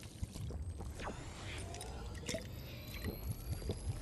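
A magical shimmer sparkles and chimes.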